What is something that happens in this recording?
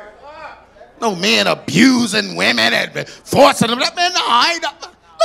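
A man speaks with animation into a microphone over loudspeakers in a large hall.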